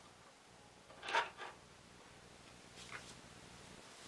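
A small plastic figure is set down on a table with a soft tap.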